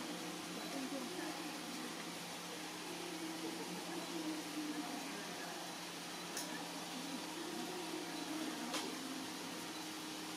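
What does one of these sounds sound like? Leafy plants rustle as a panda pushes through them.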